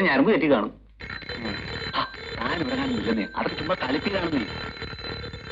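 A man speaks forcefully and loudly.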